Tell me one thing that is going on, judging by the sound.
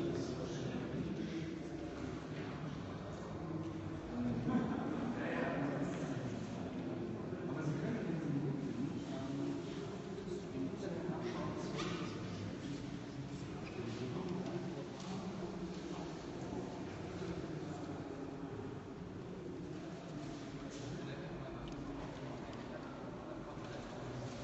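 Several people read aloud at once, their voices overlapping and echoing in a large bare hall.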